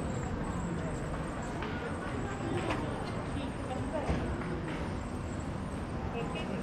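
Wheelchair wheels roll and rattle over stone paving.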